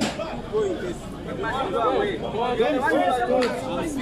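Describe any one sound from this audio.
Several men talk and call out loudly outdoors.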